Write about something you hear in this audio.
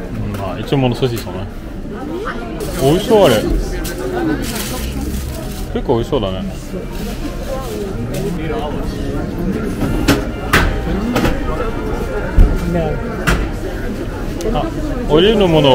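Men and women talk and chatter nearby outdoors.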